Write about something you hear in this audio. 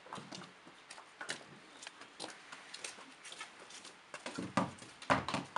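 Horse hooves clop on hard ground.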